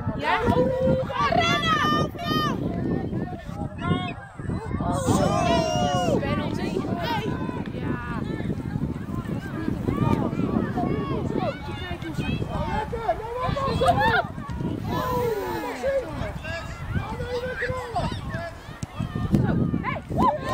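Wind blows against the microphone.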